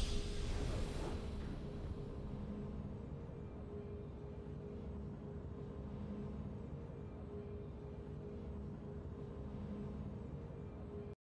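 A triumphant game fanfare swells, then settles into a low, steady musical drone.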